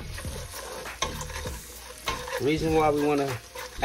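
A wooden spoon scrapes and stirs in a metal pot.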